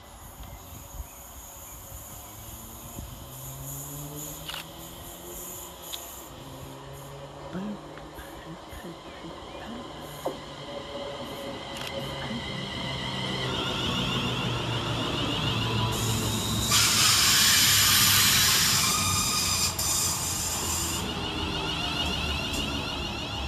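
An electric train approaches and rumbles past close by, growing louder.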